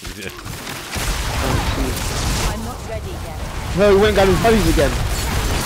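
Magic blasts rumble and crash.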